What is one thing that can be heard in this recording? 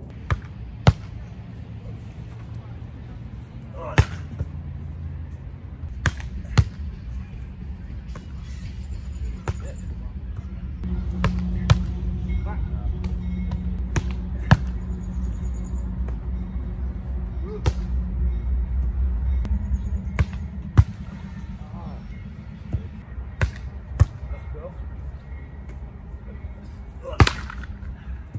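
A volleyball is struck with hands, with sharp slaps outdoors.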